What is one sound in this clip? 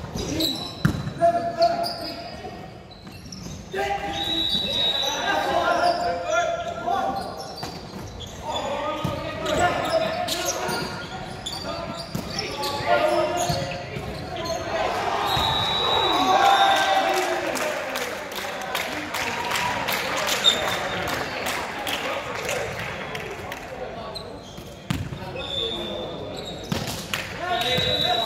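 Young players shout and call out to each other.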